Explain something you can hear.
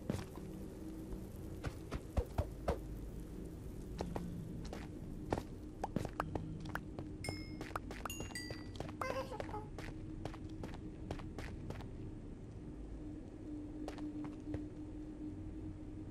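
Footsteps tap on hard stone.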